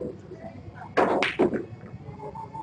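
Snooker balls click sharply together.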